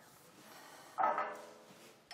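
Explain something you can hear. A glass clinks against a glass tabletop.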